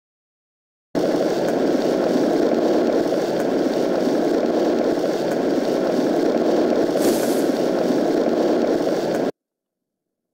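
A steady rushing hiss from a game plays while ground is laid down.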